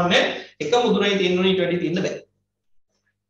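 A man speaks close to a microphone, calmly, as if teaching.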